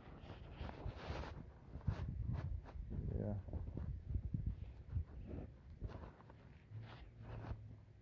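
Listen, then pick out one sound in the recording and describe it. Cloth rubs and scrapes against the microphone.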